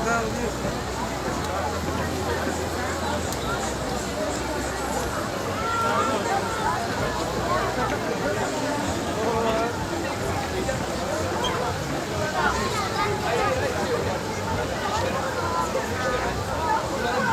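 A fountain splashes steadily.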